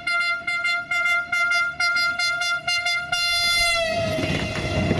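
A train horn blows in short repeated toots, then holds and drops in pitch.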